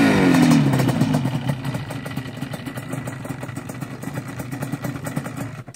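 A small off-road engine idles with a low, steady putter.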